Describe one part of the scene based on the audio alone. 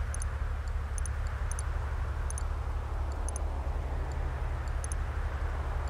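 Soft interface clicks sound in quick pairs.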